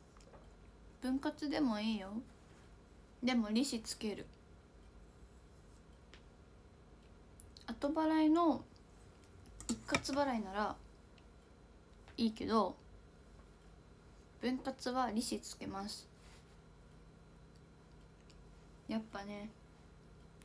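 A young woman talks calmly and closely into a microphone, in short bursts with pauses.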